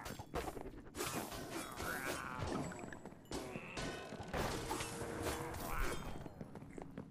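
Sword blows strike in a fast fight.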